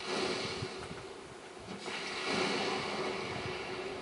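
A fireball whooshes and bursts with a roar.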